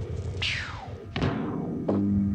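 A heavy machine press slams down with a loud thud.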